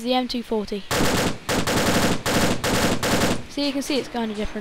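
A machine gun fires a rapid burst of shots.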